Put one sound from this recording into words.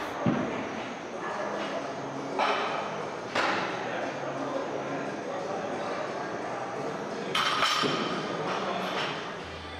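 Weights on a machine clank during squats.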